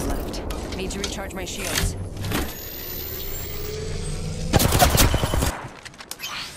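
A shield battery charges with an electric hum.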